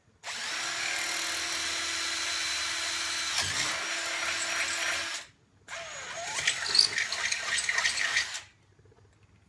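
A cordless drill whirs loudly as it bores into wood.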